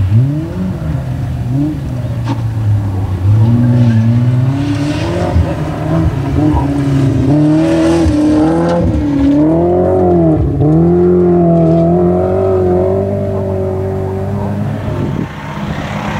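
A rally car engine revs hard and roars nearby.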